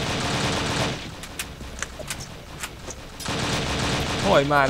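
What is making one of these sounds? A submachine gun is reloaded with metallic clicks.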